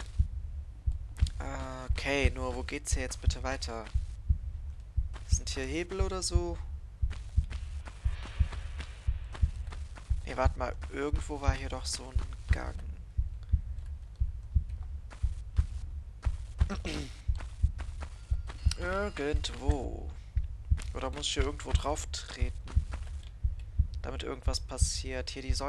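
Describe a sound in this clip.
Footsteps thud quickly and steadily on a hard floor.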